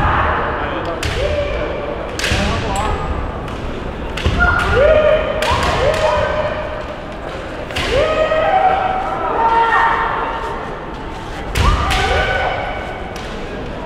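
Young fighters shout loud, drawn-out battle cries through face masks.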